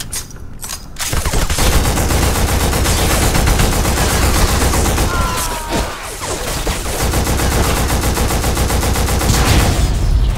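An assault rifle fires rapid bursts of shots close by.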